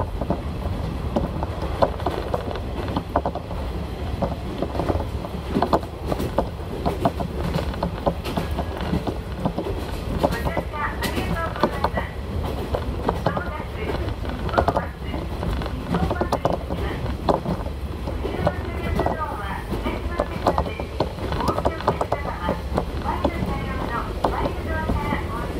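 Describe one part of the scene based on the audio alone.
A diesel railcar rumbles along, heard from inside.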